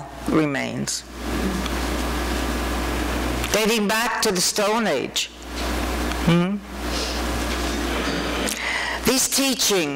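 A middle-aged woman speaks calmly into a microphone in an echoing room.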